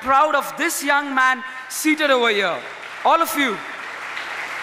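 A teenage boy speaks with feeling through a microphone.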